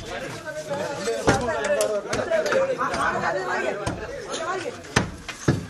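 Several men talk loudly and excitedly close by.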